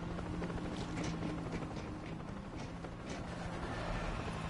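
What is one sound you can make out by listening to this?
Boots tread steadily on hard ground.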